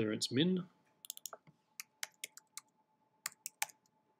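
Keyboard keys click in quick taps as someone types.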